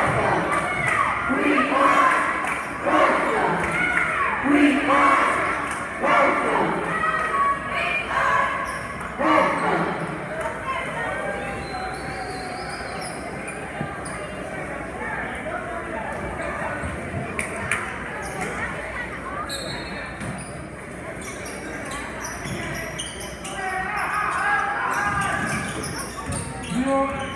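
A crowd chatters loudly in a large echoing gym.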